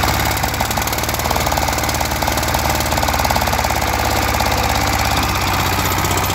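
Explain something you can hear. A small diesel engine chugs loudly and steadily close by.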